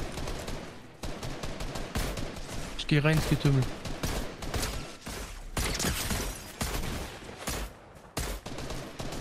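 Rifle shots crack in a video game.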